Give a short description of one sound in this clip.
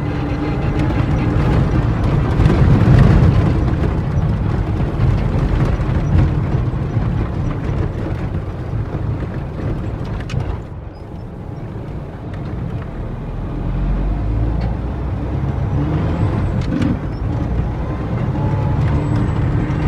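Tyres crunch over a bumpy dirt road.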